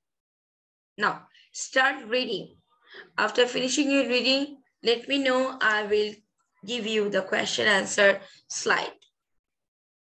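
A young woman reads aloud over an online call.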